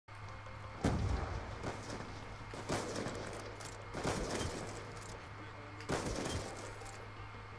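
A sniper rifle fires loud, echoing shots a few seconds apart.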